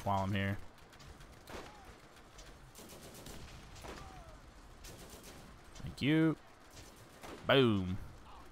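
A sniper rifle fires sharp shots.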